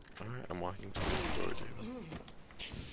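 A gun fires a shot in an echoing space.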